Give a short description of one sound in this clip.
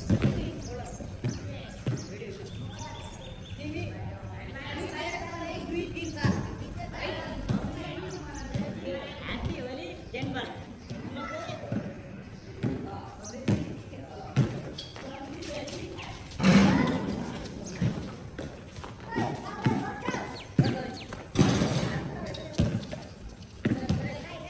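A ball bounces on a hard court outdoors.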